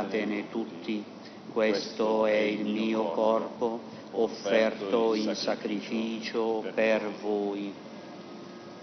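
A middle-aged man chants a prayer through a microphone in a large echoing hall.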